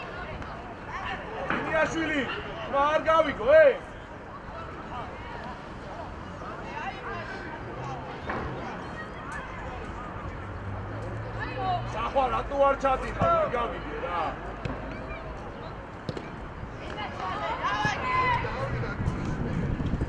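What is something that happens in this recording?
Young men shout to each other in the distance.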